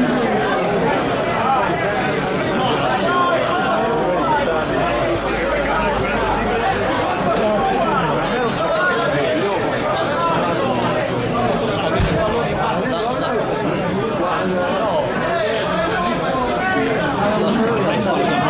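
Young men shout to each other from across an open field outdoors.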